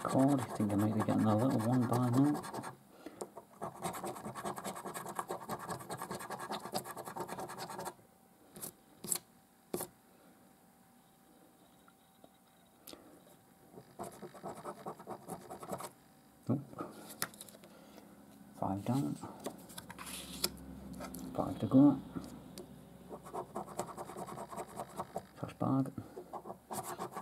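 A coin scratches rapidly across a scratch card.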